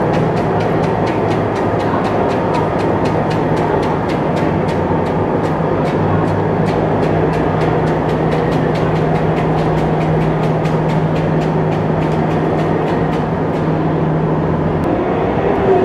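Steel tracks clatter on a steel deck.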